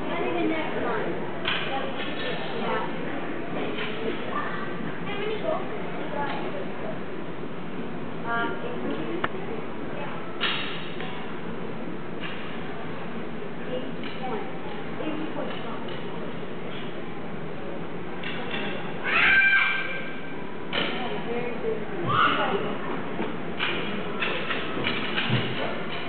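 Skates scrape across the ice in a large echoing rink.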